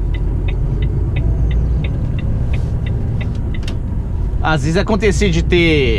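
A truck engine rumbles steadily from inside the cab.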